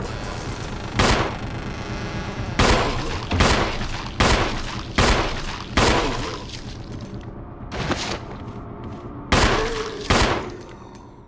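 Heavy footsteps thud slowly, one by one, with a booming echo.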